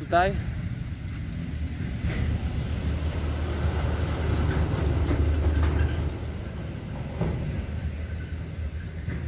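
Wind blusters against the microphone outdoors.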